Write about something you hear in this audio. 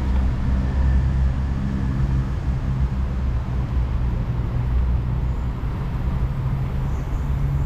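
Wind rumbles steadily against the microphone.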